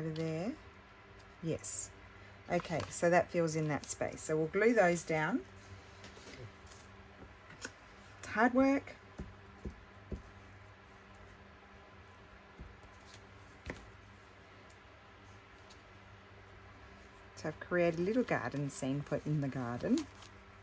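Paper rustles softly as pages are handled.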